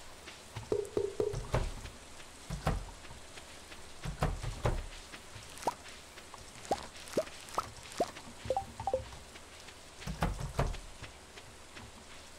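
Soft game clicks and pops sound as crops are picked.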